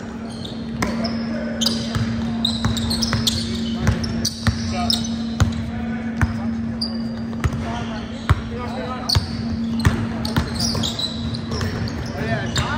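A basketball bounces repeatedly on a hard floor in a large echoing gym.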